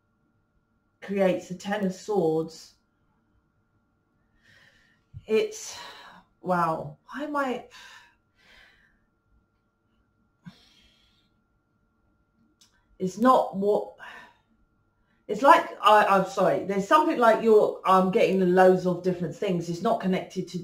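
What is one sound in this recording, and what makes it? A middle-aged woman speaks calmly and expressively close to a microphone, with pauses.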